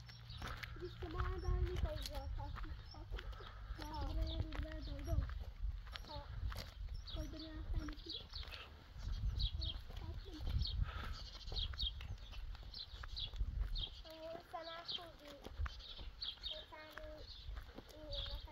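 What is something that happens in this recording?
A young child talks quietly nearby.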